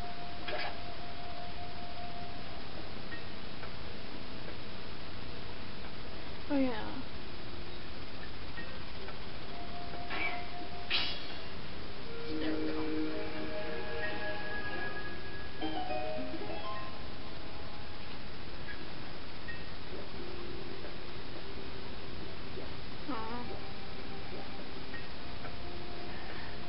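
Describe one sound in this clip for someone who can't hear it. Video game music and sound effects play through a television speaker.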